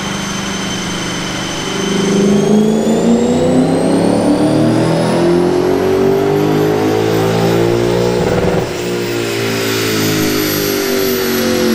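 A car engine idles, then revs up hard and climbs steadily in pitch before dropping back.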